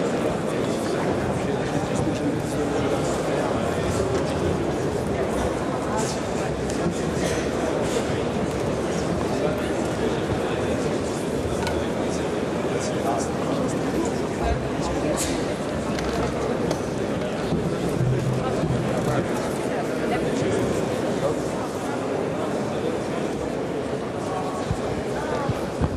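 A large crowd of men and women murmurs and chatters in a big echoing hall.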